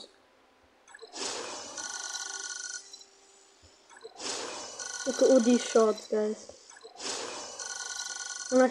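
A shimmering electronic game chime rings out with a soft whoosh.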